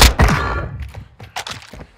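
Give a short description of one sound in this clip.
A gunshot blasts loudly and echoes.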